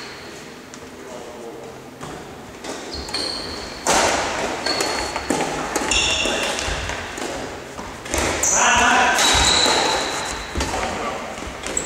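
Badminton rackets strike a shuttlecock in an echoing sports hall.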